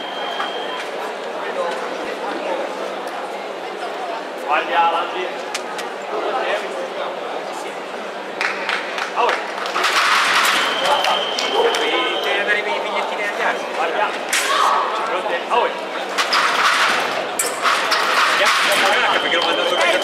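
Fencing blades clash and scrape.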